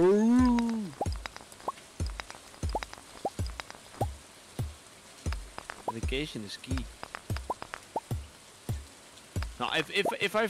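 A pickaxe strikes rocks with repeated game-style thuds.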